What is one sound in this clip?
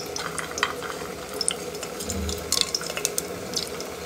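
Cashew nuts tip from a metal plate into an aluminium pressure cooker.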